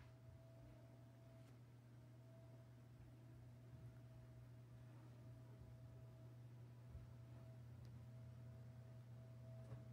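Computer fans hum softly and steadily.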